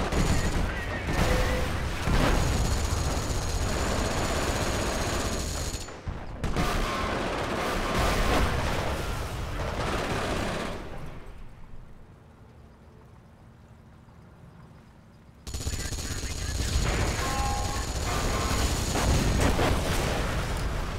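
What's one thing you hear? Explosions boom and rumble close by.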